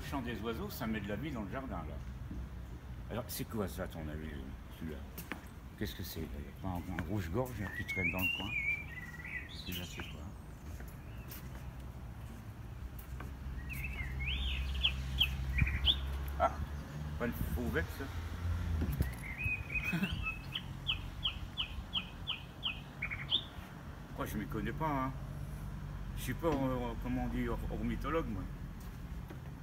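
An elderly man talks calmly nearby.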